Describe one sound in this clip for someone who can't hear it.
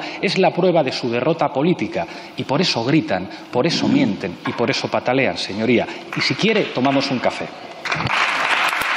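A man speaks forcefully into a microphone in a large hall.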